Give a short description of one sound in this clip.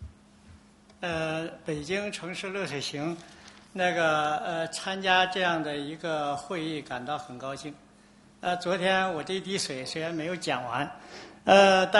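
A woman speaks calmly into a microphone, heard through a loudspeaker in a large room.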